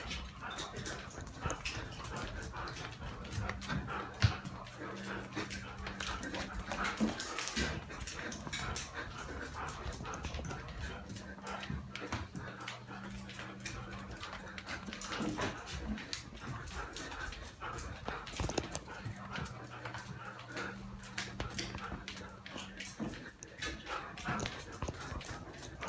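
A dog's claws click on a tiled floor as the dog runs.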